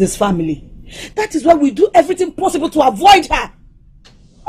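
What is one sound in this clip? A middle-aged woman speaks loudly and urgently, close by.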